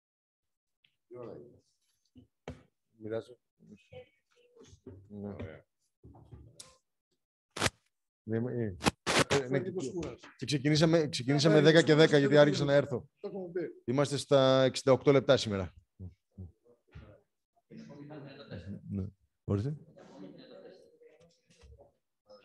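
A middle-aged man speaks calmly into a microphone in a quiet room.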